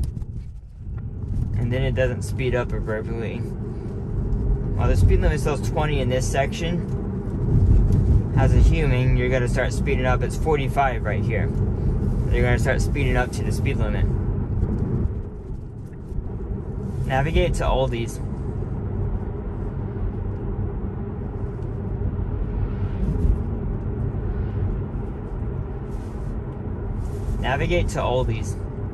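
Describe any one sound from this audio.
A car's tyres and engine rumble steadily on the road.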